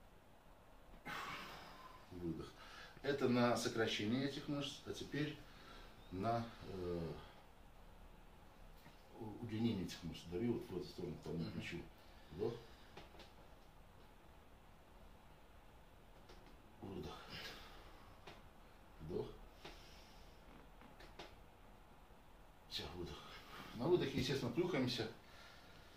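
A man talks calmly nearby, in short bursts with pauses.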